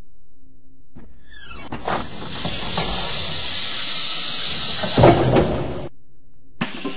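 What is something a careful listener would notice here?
Bus doors hiss with air and thud shut.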